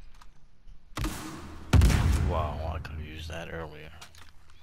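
A gun fires with a loud blast that echoes.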